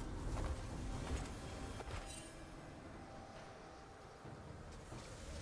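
A game character's attacks strike with sharp hits.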